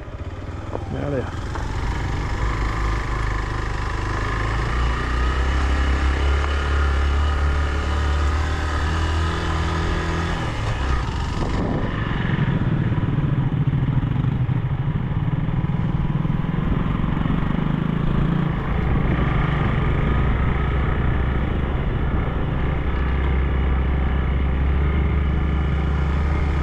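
A motorcycle engine rumbles steadily up close as it rides along.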